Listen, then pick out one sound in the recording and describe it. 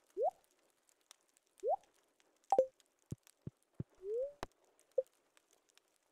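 Short game menu blips sound as options are picked.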